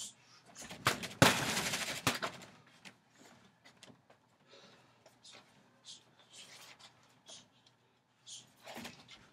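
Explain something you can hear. Gloved fists thump against a heavy punching bag.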